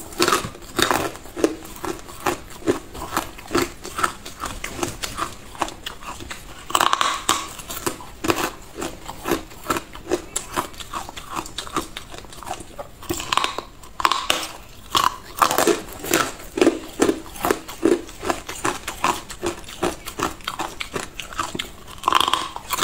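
A woman bites and crunches loudly on ice close to a microphone.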